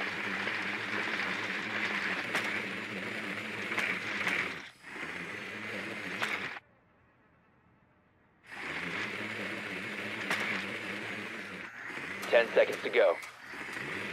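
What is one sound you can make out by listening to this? A small drone's motor whirs steadily as it rolls across a hard floor.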